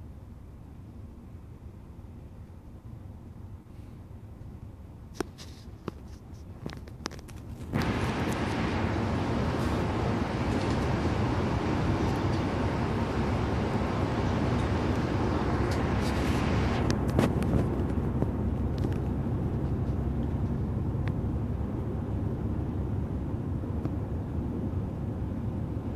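A bus engine hums steadily while driving along a highway.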